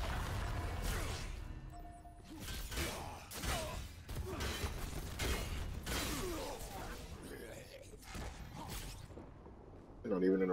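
Game combat effects crash and whoosh loudly.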